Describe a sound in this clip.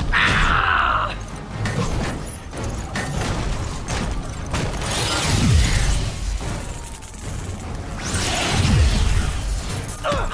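Metal tentacles clang and scrape in a fight.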